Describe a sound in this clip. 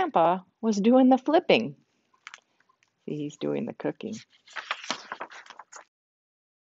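An elderly woman reads aloud calmly, close by.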